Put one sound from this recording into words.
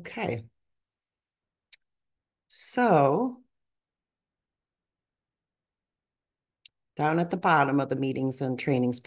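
A woman speaks calmly through a microphone on an online call, pausing between phrases.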